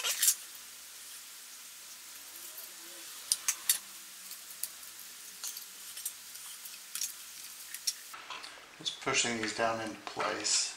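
Plastic clamps click and tap against each other.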